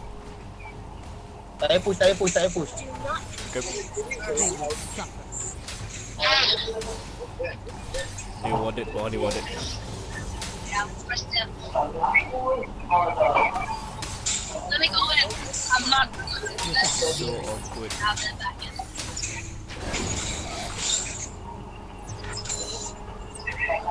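Magic spells whoosh and zap in a video game battle.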